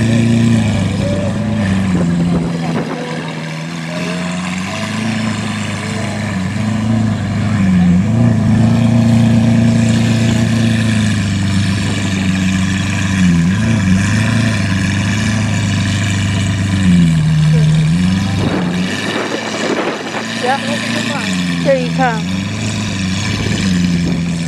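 An electric wheelchair motor whirs steadily outdoors, its pitch dipping now and then as it slows and turns.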